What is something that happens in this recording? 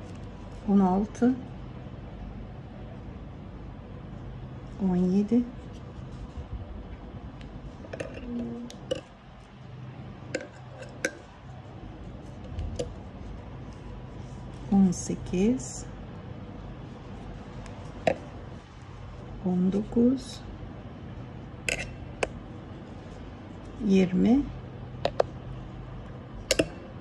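A crochet hook softly clicks and scrapes against yarn.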